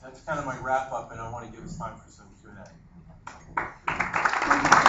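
A man speaks into a microphone to an audience.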